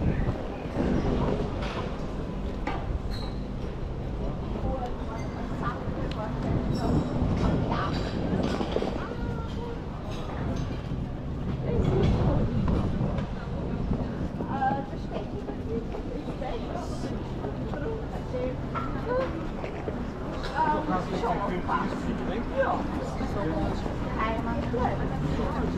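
Street traffic hums in the background.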